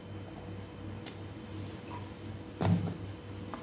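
Soft fruit bumps against a metal bowl.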